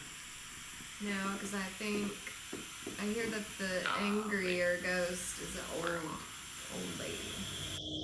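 A young woman speaks calmly and softly close by.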